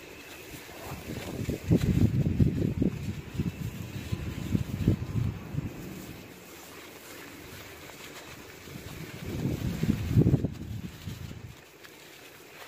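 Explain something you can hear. Loose dust and soil patter onto the ground.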